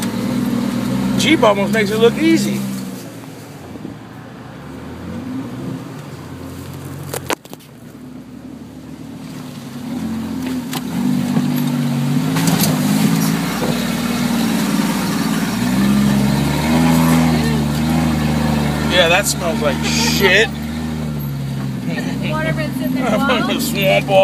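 A vehicle engine rumbles and revs unevenly.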